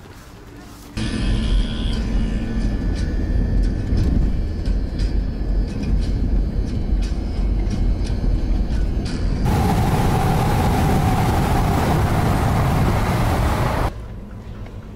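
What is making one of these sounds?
Road noise rumbles inside a moving car.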